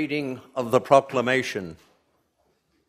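A man calls out loudly in an echoing room.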